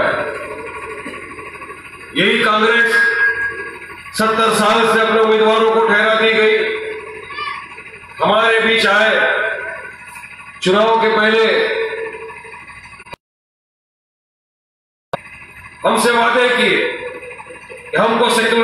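A young man speaks loudly and forcefully through a microphone and loudspeakers, in bursts.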